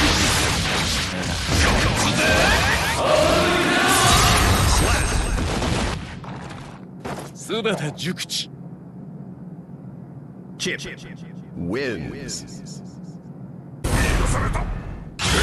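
Punches and blasts thud and crash in a fight.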